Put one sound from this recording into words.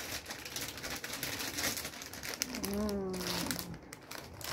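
A snack bag crinkles and rustles.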